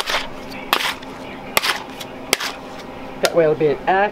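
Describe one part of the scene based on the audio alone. A metal scraper scrapes and knocks against a stone slab.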